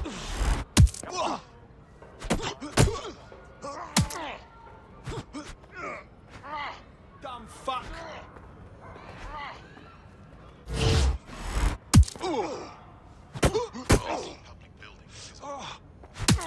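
A man grunts and shouts while fighting.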